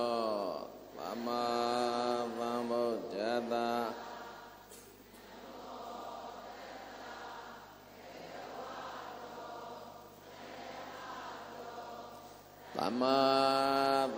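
A crowd of men and women chants together in unison in an echoing hall.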